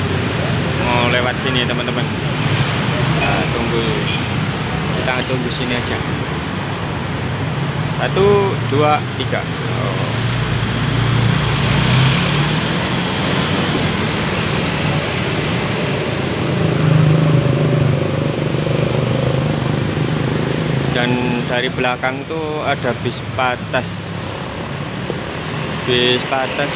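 Traffic rumbles steadily past on a busy road.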